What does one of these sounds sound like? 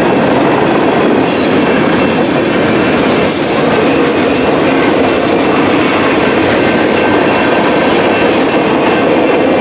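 A freight train rumbles and clatters past up close.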